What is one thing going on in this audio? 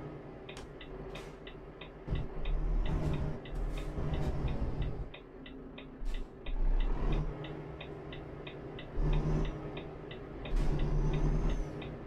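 A turn signal ticks steadily and quickly.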